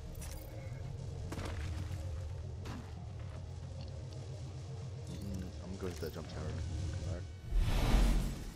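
Quick footsteps thud on the ground.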